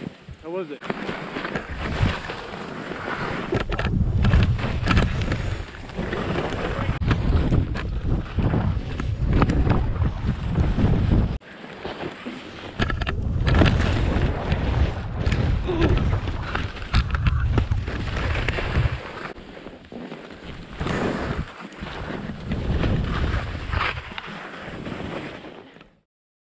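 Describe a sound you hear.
Wind rushes past the microphone.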